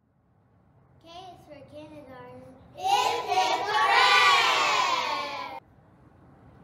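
Young children recite together in chorus, heard in a room.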